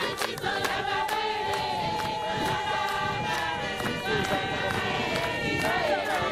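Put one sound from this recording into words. A group of men sing together outdoors.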